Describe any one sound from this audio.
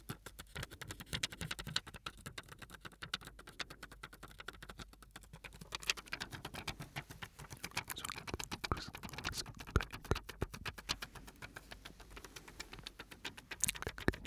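Thin plastic crinkles and crackles right by a microphone.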